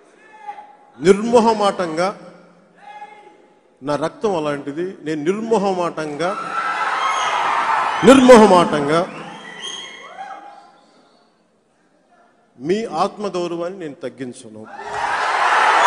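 A man speaks forcefully into a microphone over loudspeakers, echoing in a large space.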